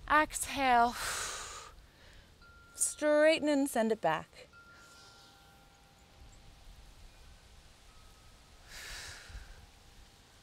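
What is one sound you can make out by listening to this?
A young woman breathes out audibly.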